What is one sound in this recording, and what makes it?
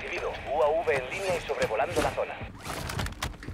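A man talks into a microphone.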